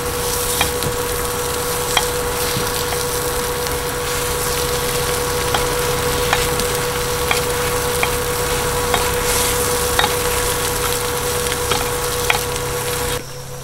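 A metal pick clicks and taps against a griddle pan.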